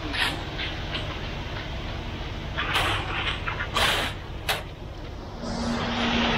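A rake scrapes through wet concrete.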